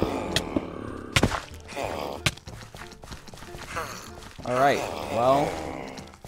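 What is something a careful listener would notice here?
Footsteps tap on a stone path.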